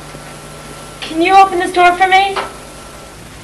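A young woman speaks quietly and playfully, close by.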